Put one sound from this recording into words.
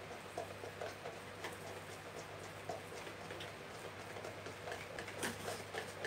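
Seasoning rattles as a shaker is shaken.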